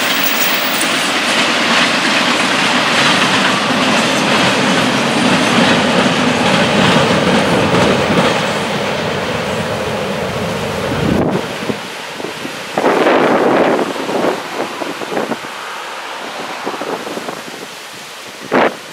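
A freight train rumbles past on the tracks, its wheels clattering.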